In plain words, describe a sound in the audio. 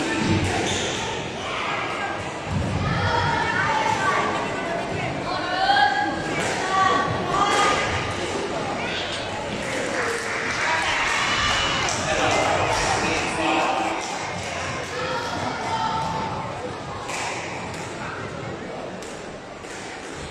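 A squash ball smacks against the walls in a rally, echoing in a large hall.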